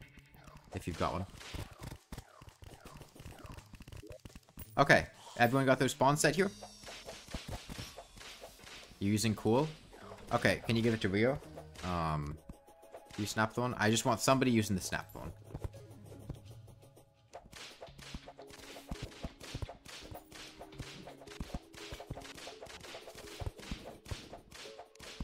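Magic weapons fire rapidly with short zapping bursts.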